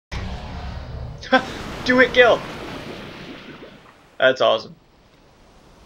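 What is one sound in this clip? A huge sea creature sinks into the water with a loud, rushing splash that slowly fades.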